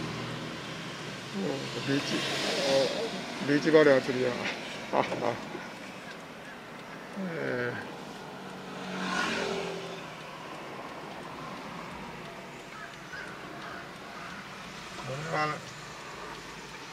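A car's engine hums steadily as tyres roll on the road.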